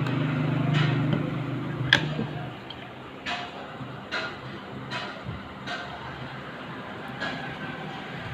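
Plastic parts click and tap against each other.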